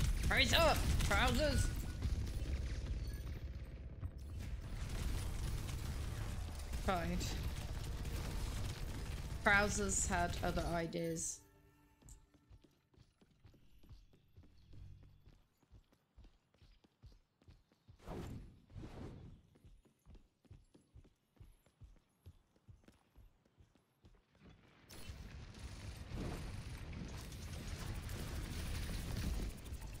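Gunfire and explosions from a video game play loudly.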